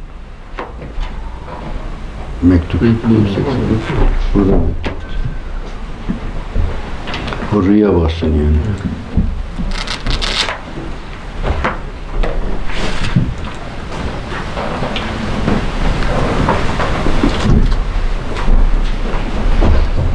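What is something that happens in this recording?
An elderly man reads aloud steadily into a microphone.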